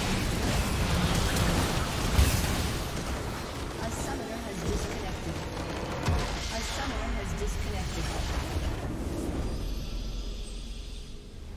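Spell blasts and clashing weapons crackle and boom in a game battle.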